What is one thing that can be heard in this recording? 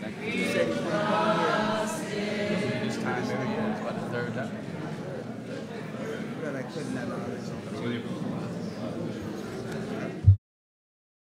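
Several men chat and greet each other at a distance in an echoing hall.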